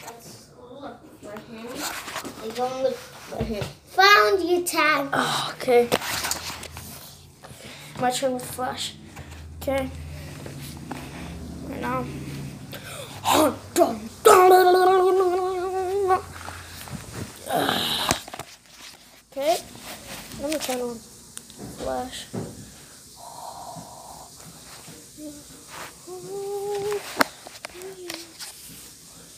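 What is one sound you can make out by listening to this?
A young boy talks and exclaims close by.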